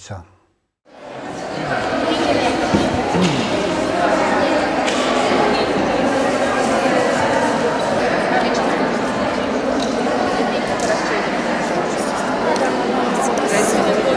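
A crowd of children chatters in a large echoing hall.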